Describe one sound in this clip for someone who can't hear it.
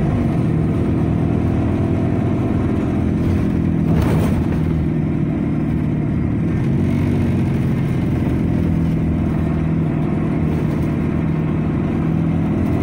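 A bus engine hums steadily from inside while driving.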